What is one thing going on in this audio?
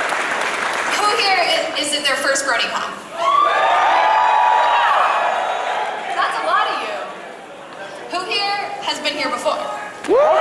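A young woman speaks with animation through a microphone in a large echoing hall.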